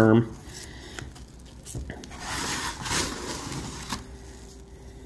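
Gritty sand rustles and scrapes as hands rub a rough block.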